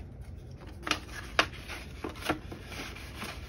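Paper bills rustle and flap as hands sort them.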